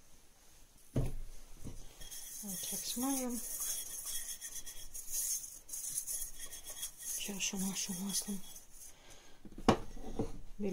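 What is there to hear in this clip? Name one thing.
A glass bowl knocks against a glass tabletop.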